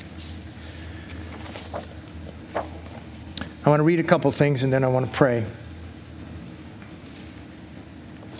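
Paper rustles as an older man handles sheets.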